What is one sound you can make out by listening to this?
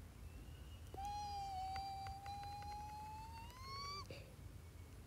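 A bright electronic tone hums and slowly rises in pitch.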